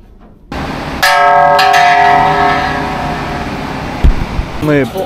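A large bell rings with a long, ringing tone.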